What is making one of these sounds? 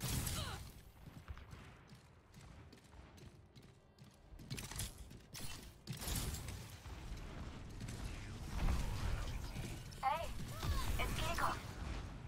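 Footsteps thud quickly across a stone floor.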